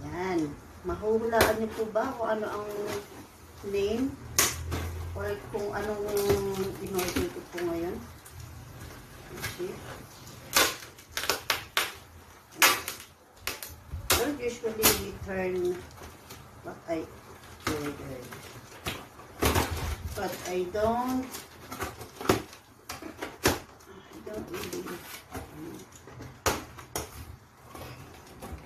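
Cardboard and paper rustle and thump as a box is handled.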